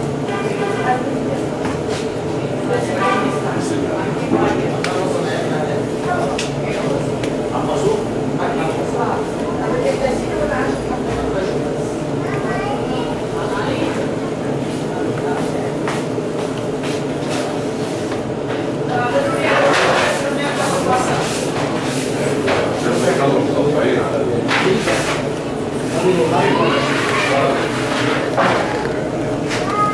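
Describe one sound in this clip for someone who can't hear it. Hands slap and pat soft dough on a board.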